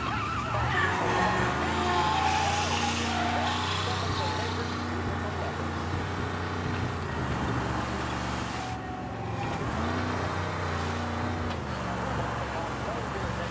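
Tyres roll over a wet road.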